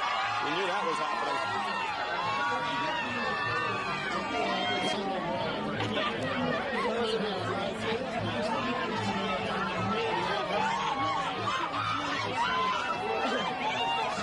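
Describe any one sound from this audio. A large crowd of men and women talks and shouts excitedly outdoors.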